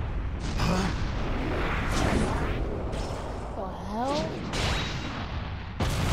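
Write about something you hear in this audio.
An energy beam blasts with a loud, roaring rush.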